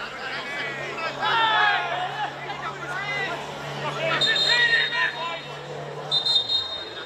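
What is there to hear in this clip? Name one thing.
Men shout across an outdoor sports field.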